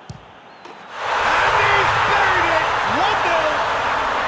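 A large stadium crowd suddenly roars and cheers.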